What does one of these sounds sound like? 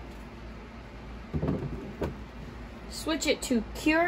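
A plastic cover is set down onto a base with a hollow clunk.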